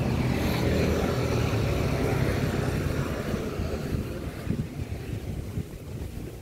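Wind rumbles outdoors, strong at first and easing off.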